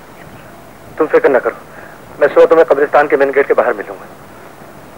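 A man speaks urgently into a telephone.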